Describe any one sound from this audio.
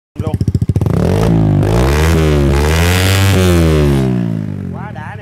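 A motorcycle engine revs loudly, rising and falling, then settles.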